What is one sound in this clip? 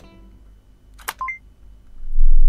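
A portable CD player's lid snaps shut.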